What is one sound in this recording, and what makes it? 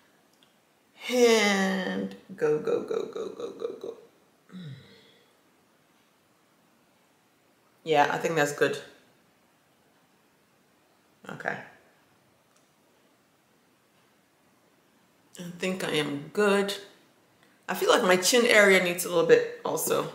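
A woman talks calmly and close by, in short bursts with pauses.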